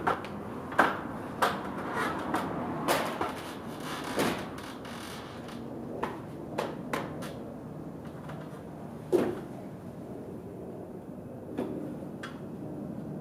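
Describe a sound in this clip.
A man knocks and taps against a metal panel.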